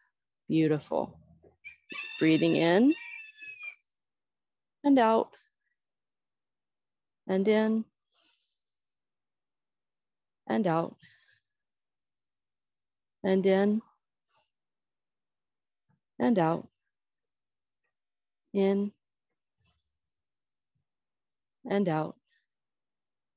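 A woman speaks short cues clearly into a close microphone, with pauses between them.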